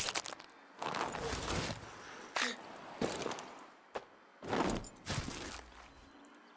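Fists thump against a man's body.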